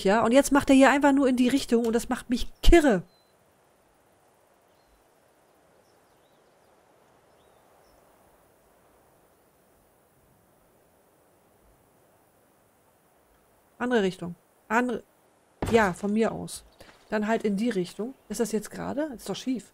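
A young woman talks with animation close to a microphone, pausing now and then.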